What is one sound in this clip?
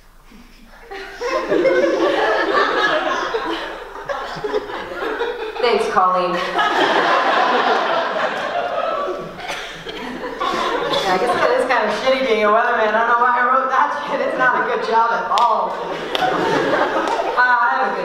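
A young woman talks with animation into a microphone in a large echoing hall.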